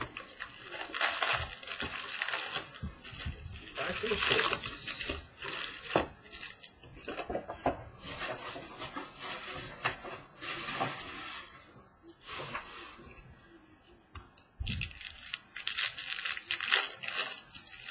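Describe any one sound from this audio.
Plastic card cases clack and rustle as they are handled.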